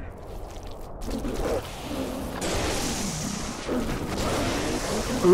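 Energy weapons fire in rapid bursts.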